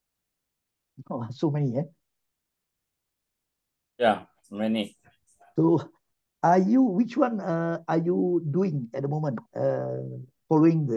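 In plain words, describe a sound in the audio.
A man speaks calmly through an online call, with pauses.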